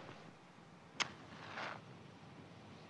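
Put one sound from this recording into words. A match strikes and flares.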